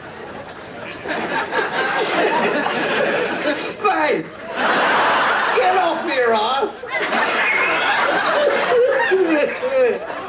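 A middle-aged man laughs loudly and talks with animation close by.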